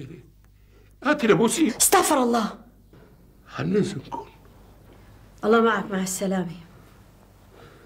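An elderly man speaks in a strained voice, close by.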